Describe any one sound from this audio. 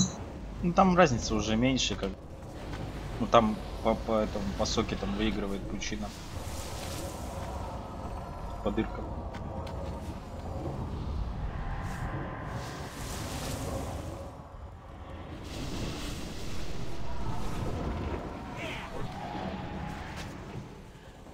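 Magic blasts whoosh and crackle in a fantasy battle.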